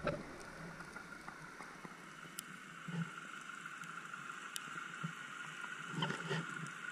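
Muffled underwater ambience crackles and hisses steadily, with soft clicks.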